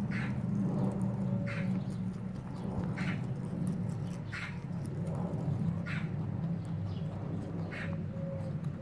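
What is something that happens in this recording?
A rabbit munches on fresh leafy stems, crunching in quick bursts.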